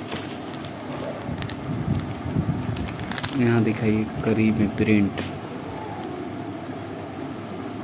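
Paper rustles and crinkles in someone's hands.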